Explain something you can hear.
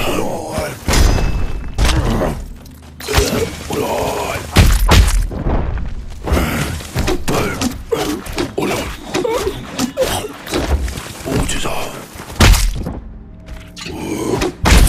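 Heavy thuds and crashes ring out as blows land.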